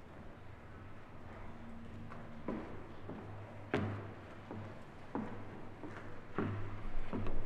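Footsteps thud on a wooden stage.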